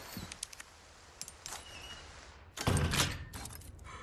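A key turns in a drawer lock with a click.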